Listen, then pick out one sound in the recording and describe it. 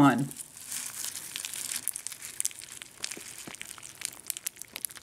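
Crisp cereal crackles and pops as milk soaks in.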